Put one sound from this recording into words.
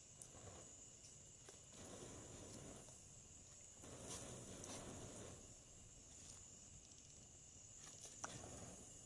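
A fire roars and crackles softly.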